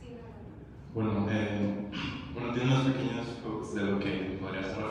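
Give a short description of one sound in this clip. A young man speaks into a microphone, heard loudly through loudspeakers in a large echoing room.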